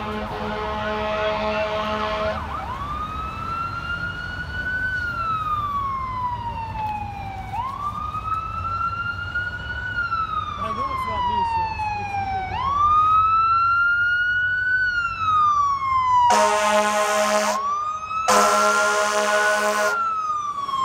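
A siren wails in long rising and falling sweeps, growing louder as it approaches.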